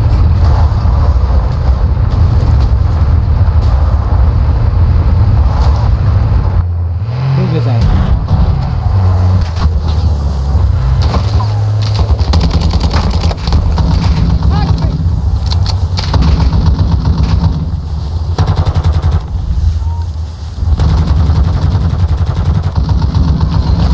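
A heavy vehicle engine rumbles steadily, deep and loud.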